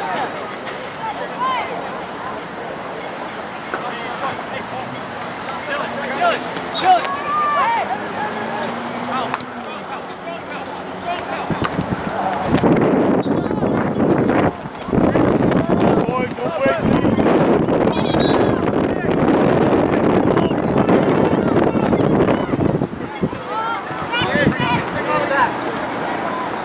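Players shout to each other across an open field.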